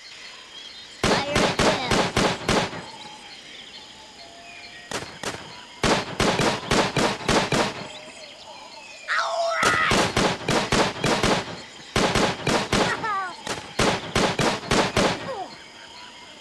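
Guns fire in rapid bursts of shots.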